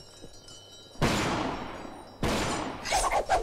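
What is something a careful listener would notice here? A gunshot rings out sharply.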